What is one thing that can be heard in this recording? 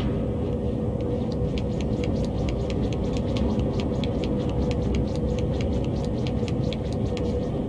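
Small footsteps patter quickly on a hard floor.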